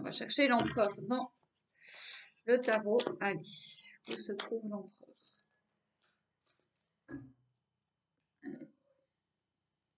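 Playing cards shuffle softly.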